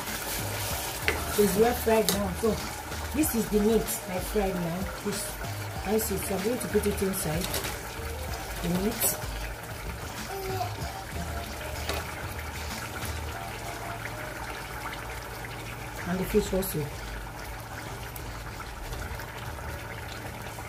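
A pot of sauce bubbles softly as it simmers.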